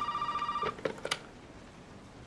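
A telephone receiver clicks as it is picked up.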